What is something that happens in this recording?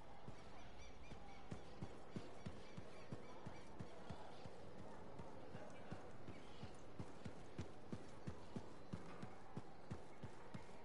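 Quick footsteps run on stone steps and paving.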